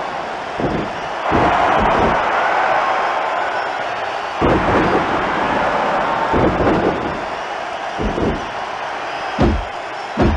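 Heavy thuds of bodies hitting a wrestling mat ring out.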